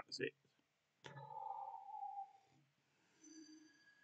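A man sips from a mug.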